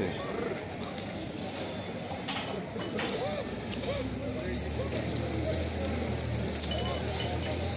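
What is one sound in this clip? Many sheep bleat close by.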